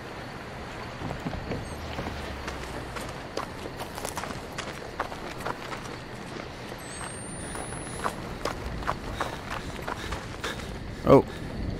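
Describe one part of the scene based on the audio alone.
Footsteps crunch on dirt and dry leaves.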